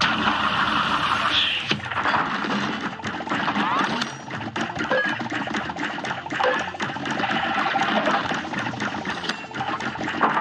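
Rapid cartoon gunfire pops and crackles without pause.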